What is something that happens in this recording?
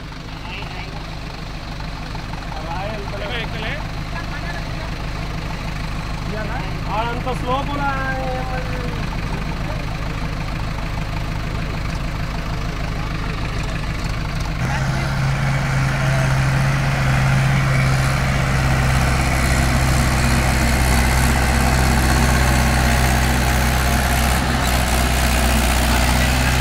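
A diesel farm tractor engine chugs, then works harder under load.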